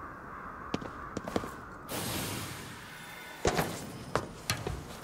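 Rain patters steadily.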